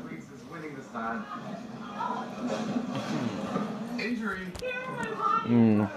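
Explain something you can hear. A dog whines and howls close by.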